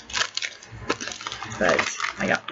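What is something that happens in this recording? Plastic packaging crinkles and rustles in a hand.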